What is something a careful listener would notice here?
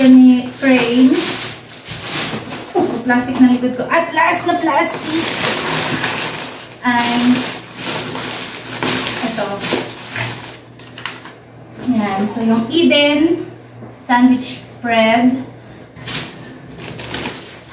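Plastic bags rustle and crinkle.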